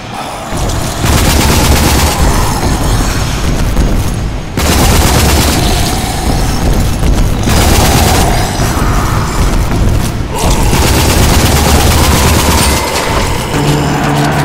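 Gunfire from a rifle rings out in rapid bursts.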